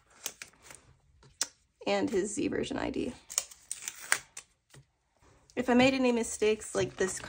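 Plastic binder sleeves crinkle and rustle under handling fingers.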